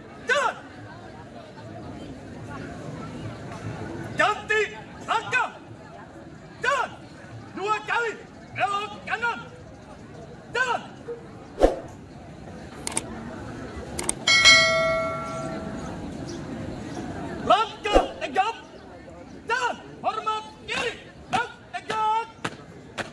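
A young man shouts marching commands loudly outdoors.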